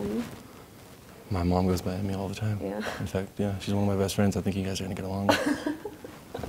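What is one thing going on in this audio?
A young woman talks and laughs softly up close.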